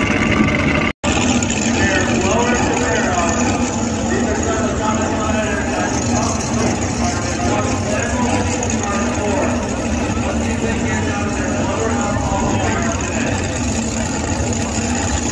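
An off-road truck engine rumbles as it climbs.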